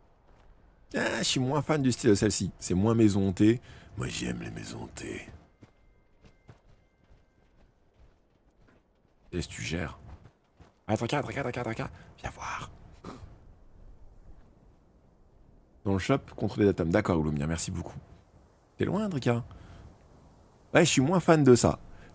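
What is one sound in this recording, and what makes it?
A young man talks with animation close to a microphone, in bursts with pauses.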